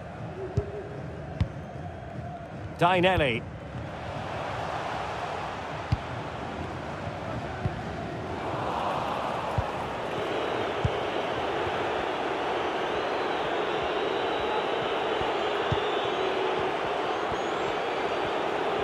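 A stadium crowd roars and swells.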